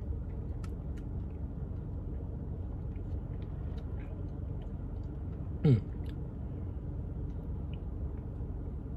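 A man sips and swallows a drink close by.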